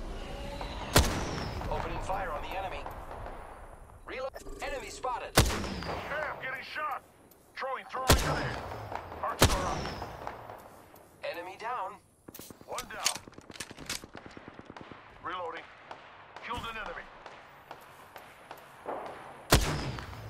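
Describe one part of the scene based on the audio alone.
Sniper rifle shots crack loudly, one at a time.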